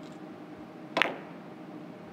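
A cue strikes a billiard ball with a sharp knock.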